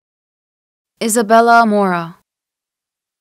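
A young woman answers calmly and clearly.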